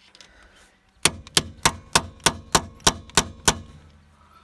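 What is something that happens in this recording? A ratchet wrench clicks rapidly as it turns a lug nut.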